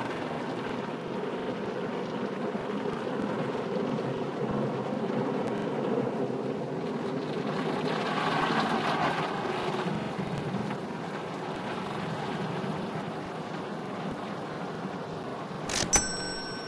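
Spinning car wash brushes whir and swish steadily.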